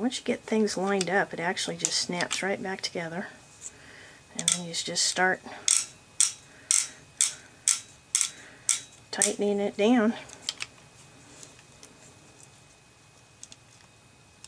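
Metal gun parts click and scrape as they are taken apart.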